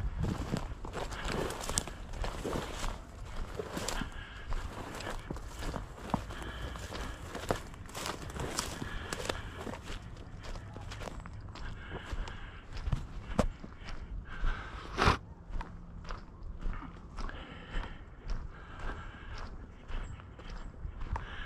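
Footsteps crunch and swish through dry grass.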